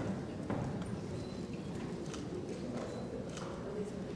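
A woman speaks through a microphone and loudspeakers in a large echoing hall.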